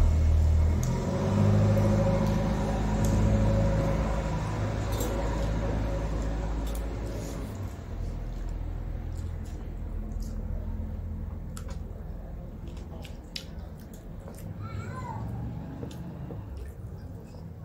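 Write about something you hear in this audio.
Fingers squish and mash soft food on metal plates.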